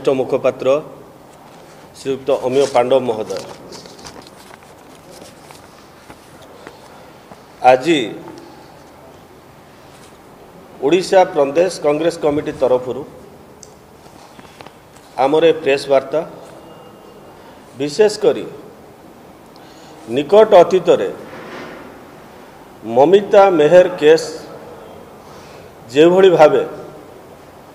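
A middle-aged man speaks into a microphone in short, deliberate bursts with pauses between.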